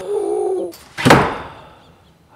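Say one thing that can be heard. A door shuts with a sharp thud.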